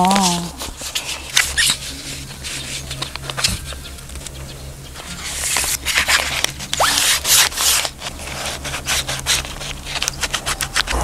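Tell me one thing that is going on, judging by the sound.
A plastic sheet rustles and crinkles against a car window.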